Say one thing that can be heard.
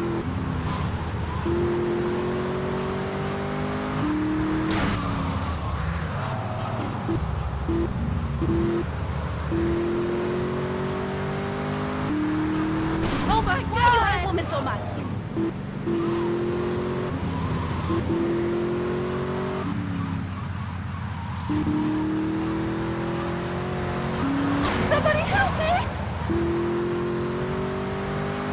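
A sports car engine revs hard, rising in pitch and dropping with each gear change.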